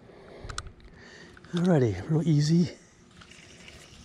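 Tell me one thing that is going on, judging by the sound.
A fishing reel whirs and clicks as line is wound in.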